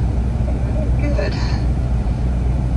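A woman laughs with delight over a loudspeaker.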